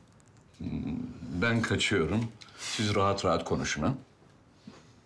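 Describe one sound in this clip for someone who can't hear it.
An older man speaks close by.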